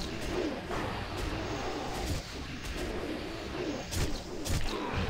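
Magic blasts and combat effects crackle and boom in a fast battle.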